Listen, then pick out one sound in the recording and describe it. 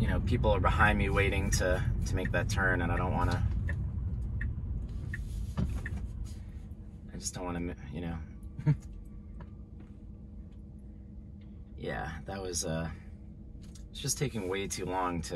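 Tyres rumble steadily on the road inside a moving car.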